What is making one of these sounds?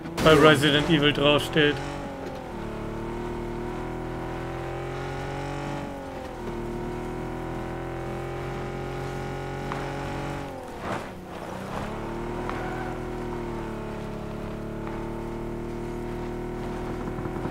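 A car engine hums steadily and rises and falls in pitch as the car drives over rough ground.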